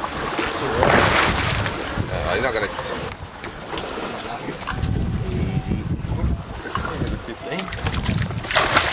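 Sea water splashes and churns against a boat.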